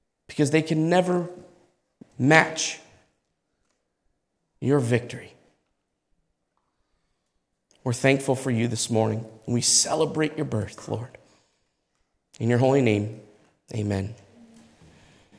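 A man speaks calmly and solemnly through a microphone in an echoing room, with long pauses.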